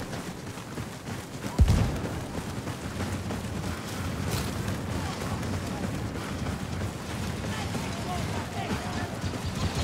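Footsteps crunch and shuffle through soft sand.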